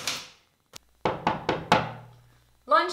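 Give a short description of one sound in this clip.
A woman knocks on a wooden door.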